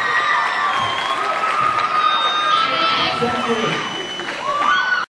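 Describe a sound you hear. An electric guitar plays a melody.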